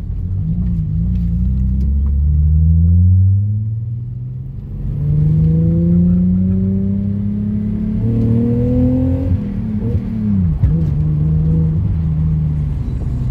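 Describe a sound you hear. Tyres rumble over a dirt surface.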